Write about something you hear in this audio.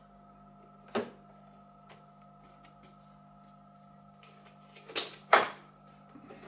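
A plastic casing clicks and knocks as hands handle it.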